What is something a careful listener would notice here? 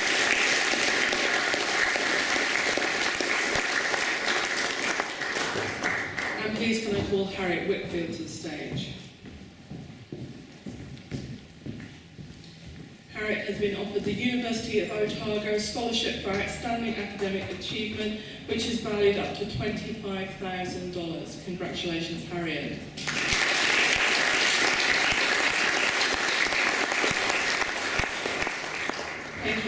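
People in an audience clap steadily.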